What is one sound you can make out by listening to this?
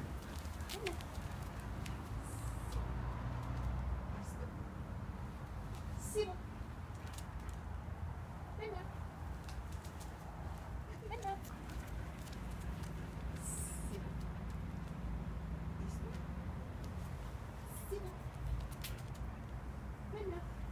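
A woman gives short, calm commands to a dog nearby.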